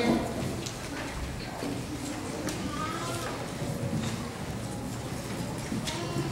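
Children and adults chatter and murmur in an echoing hall.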